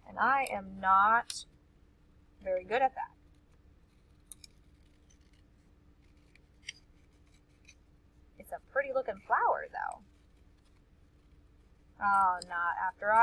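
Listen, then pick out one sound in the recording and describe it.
A woman speaks calmly and clearly through a microphone, in short phrases with pauses.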